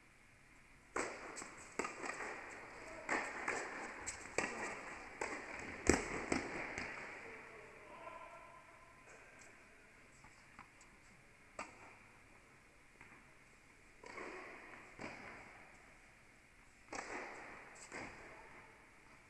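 Tennis rackets hit a ball back and forth, echoing in a large hall.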